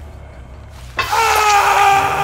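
A blade strikes with a sharp hit.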